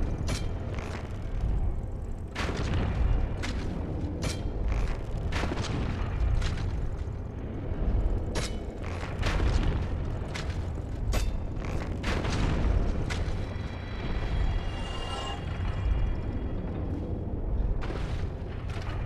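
Metal weapons clang and strike in a fight, again and again.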